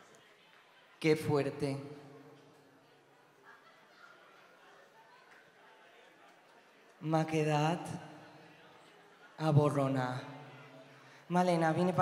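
A young man sings loudly into a microphone in an echoing hall.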